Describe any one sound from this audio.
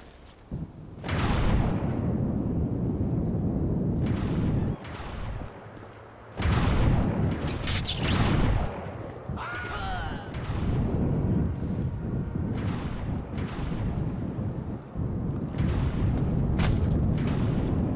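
A loud rushing whoosh of wind roars past in long bursts.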